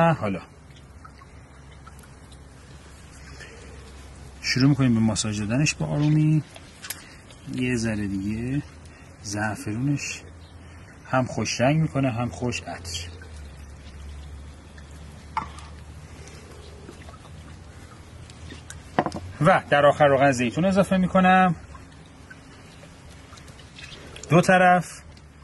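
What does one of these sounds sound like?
Hands squelch wetly while rubbing marinade into a raw chicken.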